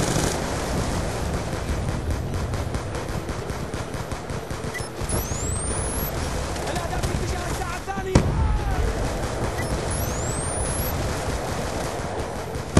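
Rapid gunfire crackles and rumbles without pause.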